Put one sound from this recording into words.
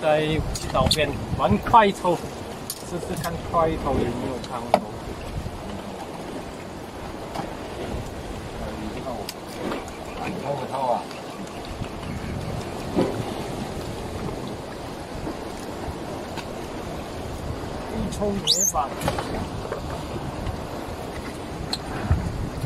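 Water laps against a small boat.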